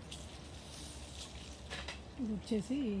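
Leaves rustle and brush close by.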